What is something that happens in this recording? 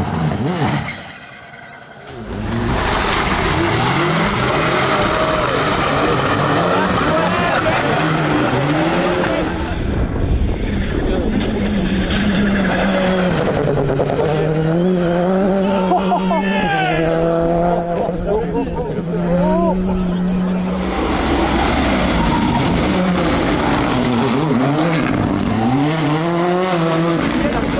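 A rally car engine roars and revs hard, its pitch rising and falling through gear changes.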